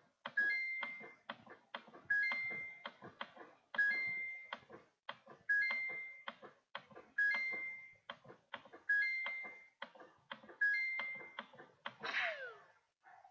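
A video game chimes with short beeps in a steady rhythm.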